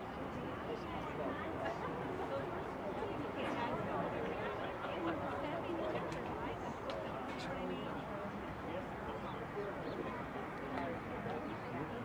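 A group of girls chatter and murmur together.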